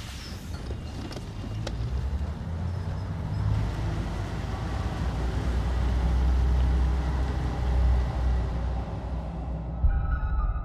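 A bus engine rumbles low and steadily.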